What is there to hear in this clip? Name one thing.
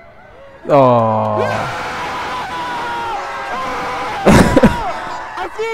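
A crowd of young people cheers and screams loudly outdoors.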